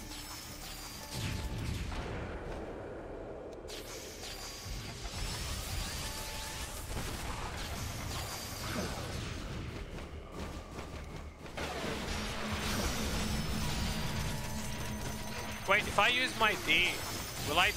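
Magic blasts and explosions rumble in a fast battle.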